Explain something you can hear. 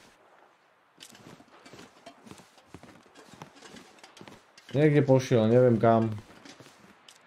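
Footsteps crunch softly in snow.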